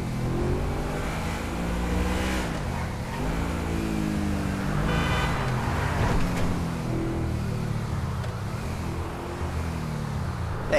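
A sports car engine roars and revs up and down as it speeds along.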